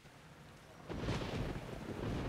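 Rain patters down steadily outdoors.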